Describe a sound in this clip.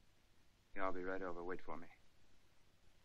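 A man speaks calmly into a telephone, close by.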